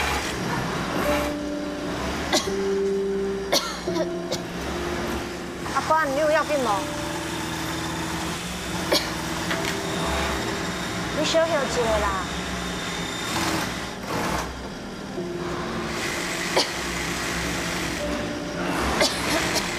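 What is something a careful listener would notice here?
Sewing machines whir and clatter steadily.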